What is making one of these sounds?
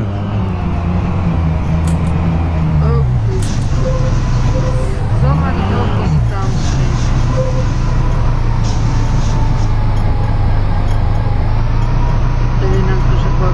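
A bus engine hums low and steady as the bus drives along.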